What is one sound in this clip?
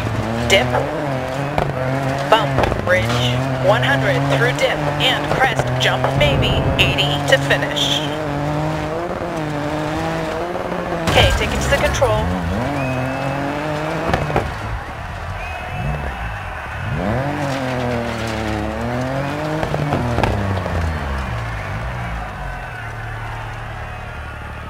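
Tyres crunch and skid on loose gravel.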